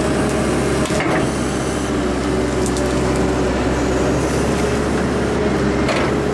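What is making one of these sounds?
Branches and roots snap and crack as an excavator bucket digs.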